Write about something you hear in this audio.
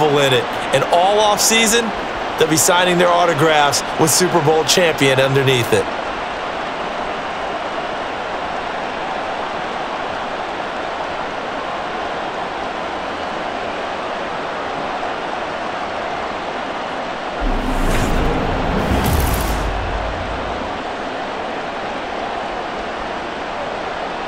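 A stadium crowd cheers and roars steadily.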